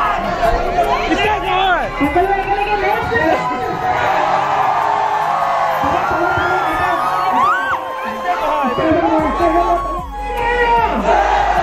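A crowd of young men shouts and cheers excitedly close by.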